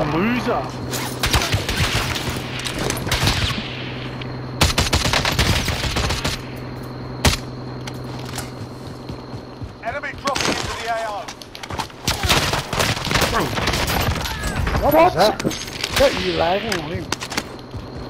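Rapid gunshots crack and rattle in bursts.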